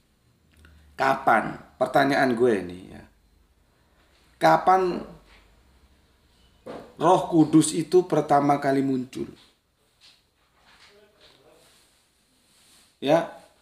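A middle-aged man speaks calmly in bursts close to the microphone.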